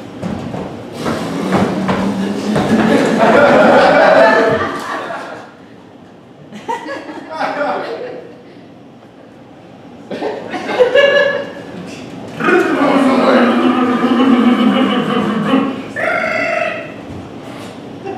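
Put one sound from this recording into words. A man speaks loudly with animation on a stage, heard from the audience.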